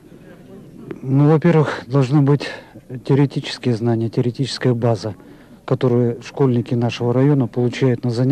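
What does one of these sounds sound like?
A middle-aged man speaks calmly into a microphone close by.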